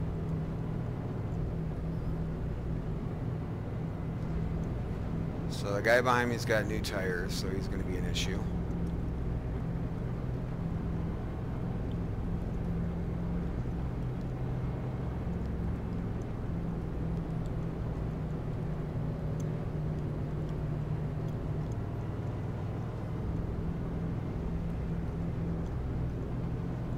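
A race car engine drones steadily at a constant pitch.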